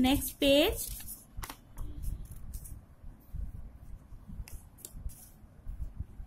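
Paper pages rustle as a book's pages are turned.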